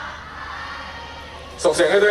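A young man sings through a microphone over loudspeakers.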